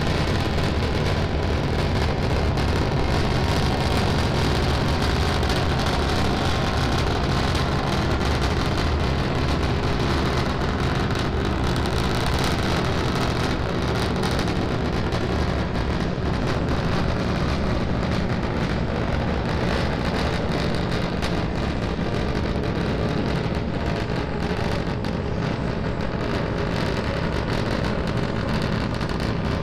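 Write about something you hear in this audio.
A rocket engine roars steadily with a deep, crackling rumble.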